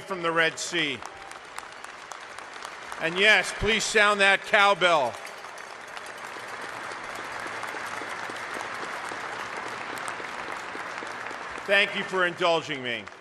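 A large crowd applauds steadily in a big echoing hall.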